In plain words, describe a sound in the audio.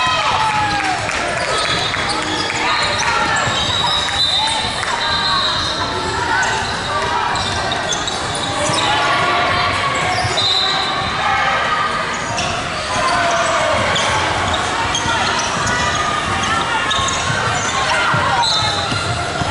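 Young women call out to each other across the court.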